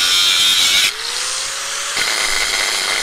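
An angle grinder's motor spins up with a rising whine.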